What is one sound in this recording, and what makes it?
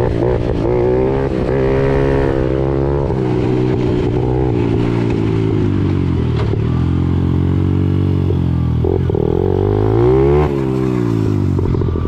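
A small dirt bike engine buzzes loudly up close, revving up and down.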